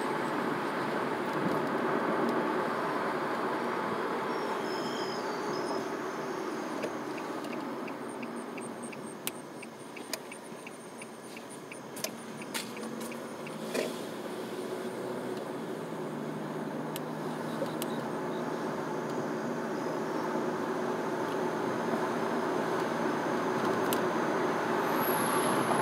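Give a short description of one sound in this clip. A car's tyres hum on asphalt, heard from inside the car, quieting as it slows for a turn and building again as it picks up speed.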